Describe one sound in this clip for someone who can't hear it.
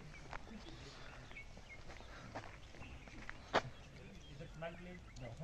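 Footsteps crunch on a road as a man walks.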